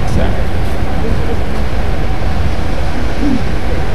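A boat's wake swishes through calm water.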